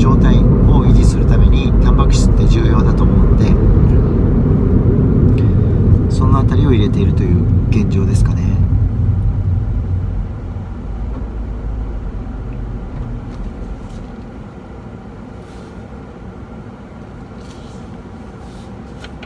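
A car engine rumbles low and steady, then fades.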